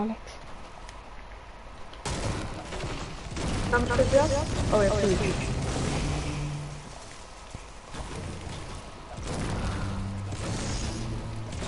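A pickaxe thuds repeatedly against wood and stone.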